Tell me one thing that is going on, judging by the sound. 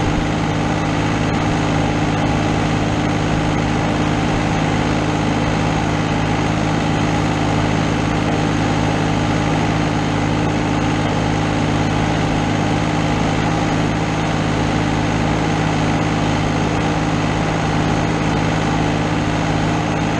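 A tractor engine hums steadily close by.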